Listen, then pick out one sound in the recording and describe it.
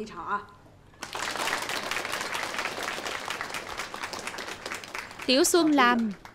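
A group of people clap their hands in lively applause.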